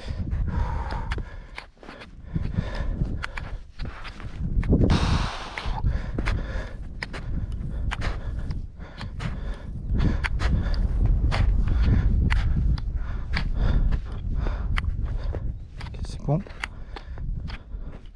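Trekking poles tap and scrape on snow.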